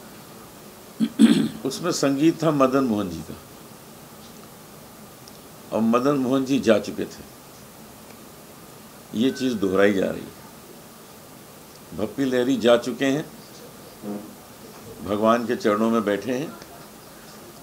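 A middle-aged man speaks with animation into microphones, in short bursts with pauses.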